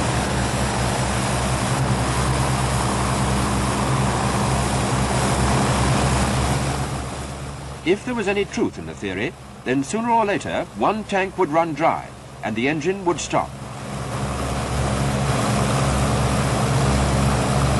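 Aircraft propeller engines drone loudly and steadily, fading away for a while in the middle.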